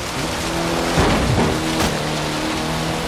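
A car crashes through a tree with a loud crack.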